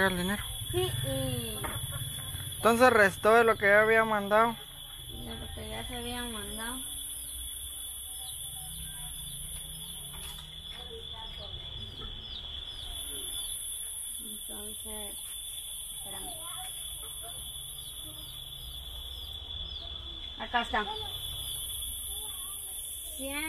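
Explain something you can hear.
A young woman talks nearby in a calm voice.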